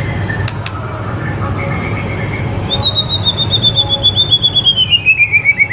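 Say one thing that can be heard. A white-rumped shama sings a rapid series of whistled notes.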